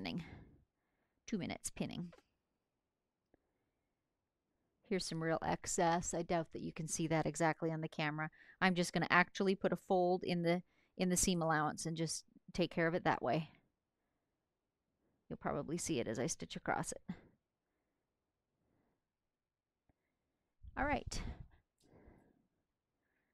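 A woman talks calmly and closely, as if into a microphone, with pauses.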